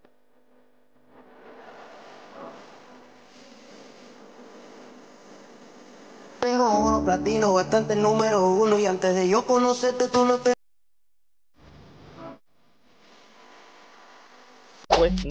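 A young man raps into a close microphone.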